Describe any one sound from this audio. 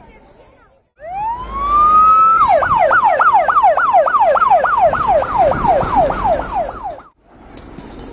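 A fire truck siren wails, rising and falling fast.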